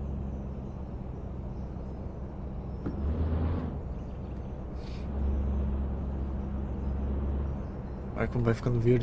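A car engine hums steadily as a vehicle drives slowly.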